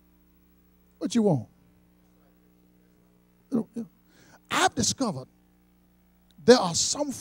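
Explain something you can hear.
A middle-aged man preaches forcefully into a microphone in bursts, with pauses between phrases.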